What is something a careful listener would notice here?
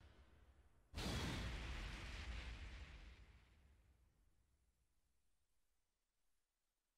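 A loud blast bursts and slowly fades away.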